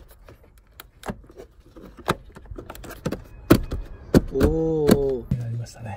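Plastic trim clicks and snaps as hands press it into place.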